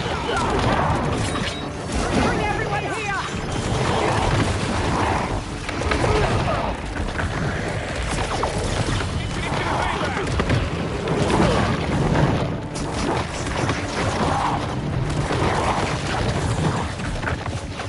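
Punches and impacts thud and crash in a game fight.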